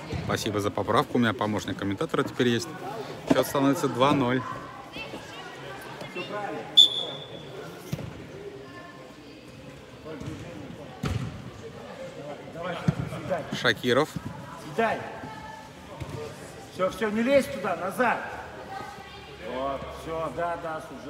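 Children shout and call out across a large echoing hall.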